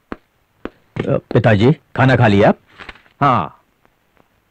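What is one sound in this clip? A middle-aged man speaks with feeling, close by.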